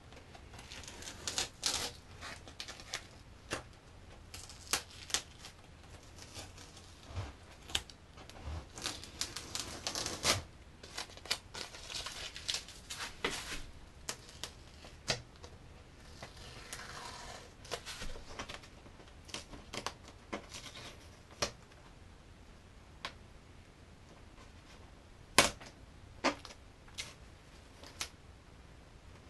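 Masking tape crinkles and tears as it is peeled away.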